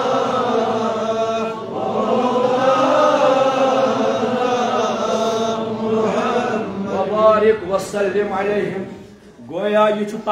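A man chants in a long, sustained melodic voice through a microphone and loudspeaker, in a reverberant room.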